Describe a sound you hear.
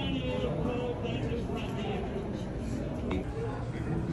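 A crowd of people murmurs and chats nearby.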